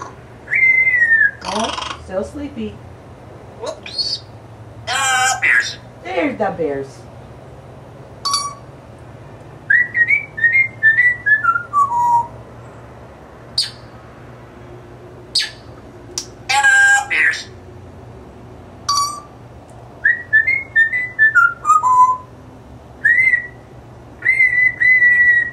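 A parrot whistles, squawks and chatters close by.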